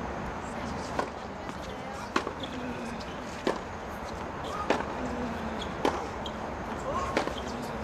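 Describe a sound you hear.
A tennis ball is hit back and forth with sharp pops of rackets.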